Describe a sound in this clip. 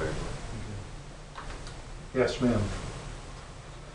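A man speaks calmly across a small room, heard from a short distance.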